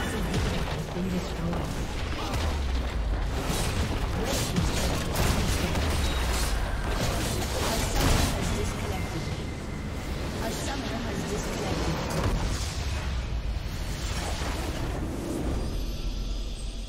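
Game spells and attacks crash and burst in quick succession.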